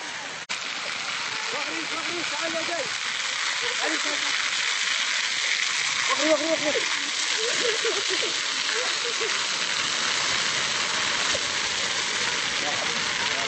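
A field fire roars and crackles.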